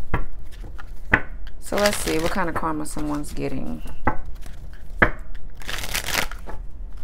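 Playing cards are shuffled and tapped together.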